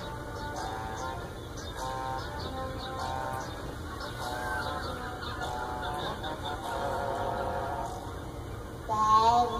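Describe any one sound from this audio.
Electronic music plays softly through a television loudspeaker.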